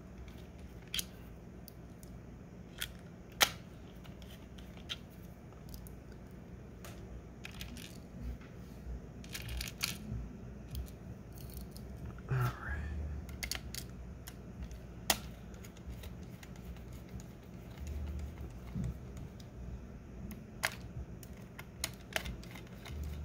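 Small metal screws click and tap on a hard surface.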